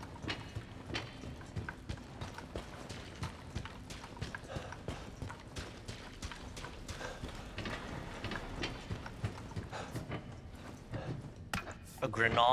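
Footsteps thud steadily on a hard floor and wooden stairs.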